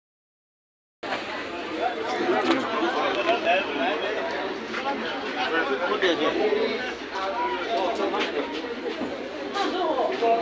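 Young men chatter nearby.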